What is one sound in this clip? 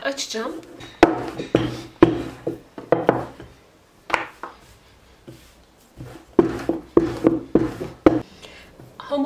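A wooden rolling pin rolls and thumps on dough on a board.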